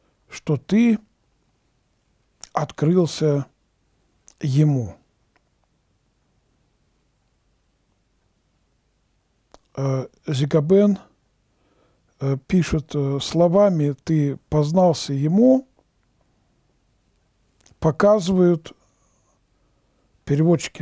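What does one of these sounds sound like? An elderly man reads aloud slowly and calmly, close to a microphone, with long pauses.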